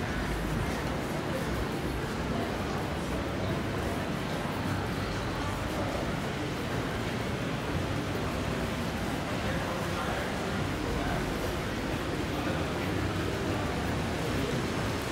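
A busy indoor hall echoes with the murmur of distant voices.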